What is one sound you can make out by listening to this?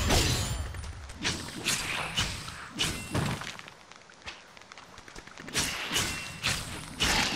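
A sword slashes and strikes again and again in a fight.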